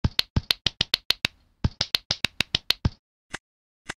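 Toppings patter quickly onto a pizza.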